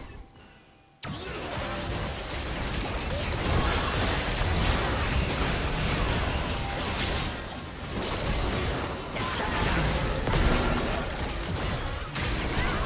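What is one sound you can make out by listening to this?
Magic spells blast and crackle in a busy fight.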